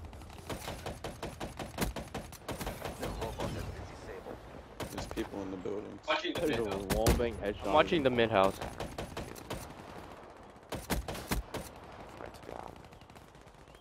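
Rapid gunfire rattles from a game.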